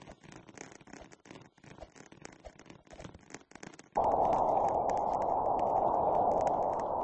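Light footsteps patter on a hard floor.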